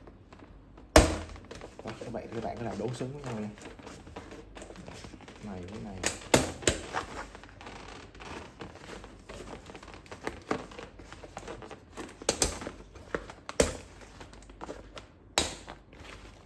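Metal parts click and snap into place.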